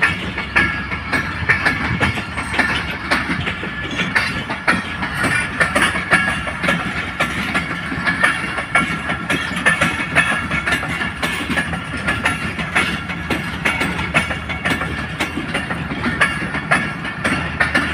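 Metal wheels squeal against the rails.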